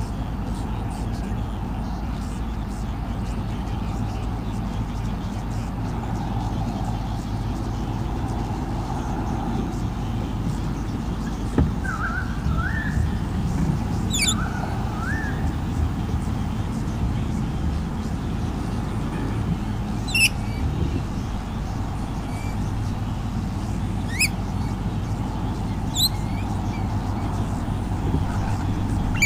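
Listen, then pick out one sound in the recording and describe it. Wind rustles leaves and rumbles outdoors.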